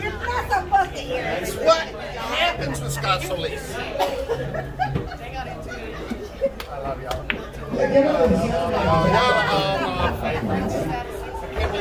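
Several men and women chat nearby in a busy room.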